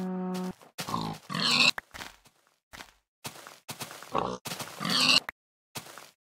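A pig squeals and grunts in pain.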